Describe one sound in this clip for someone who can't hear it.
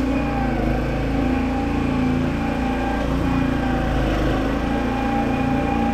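A riding lawn mower engine drones steadily nearby.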